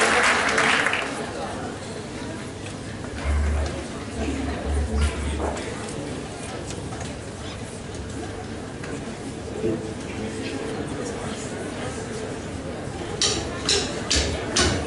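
A band plays live music on stage.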